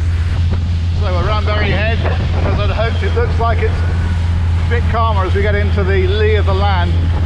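A middle-aged man talks with animation close by, over engine and wind noise.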